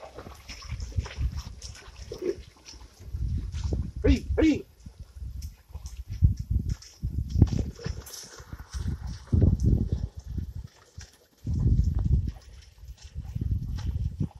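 A wooden plough drags and squelches through wet mud.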